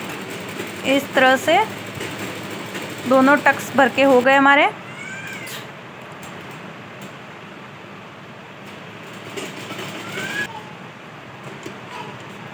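A sewing machine hums as it stitches.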